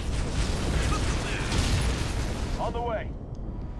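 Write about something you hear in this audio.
Gunfire and explosions rumble in a battle.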